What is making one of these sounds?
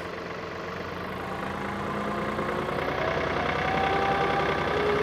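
A tractor's hydraulics whine as its loader arm lifts.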